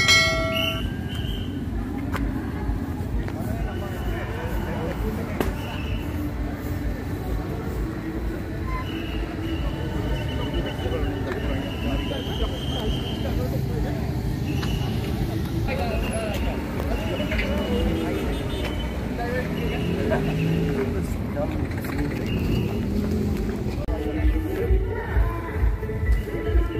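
A crowd of men talk and shout outdoors at night.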